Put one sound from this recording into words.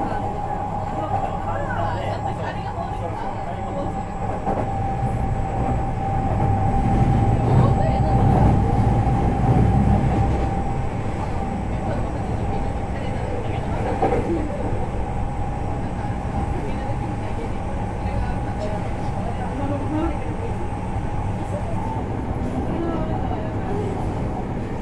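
A stopped electric train hums steadily with a faint whine.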